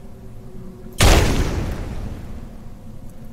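A fiery explosion bursts with a loud roar and fades.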